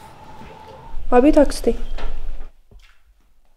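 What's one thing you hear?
A woman speaks, close by.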